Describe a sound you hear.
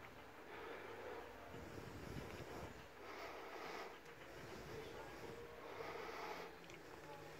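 A dog pants rapidly close by.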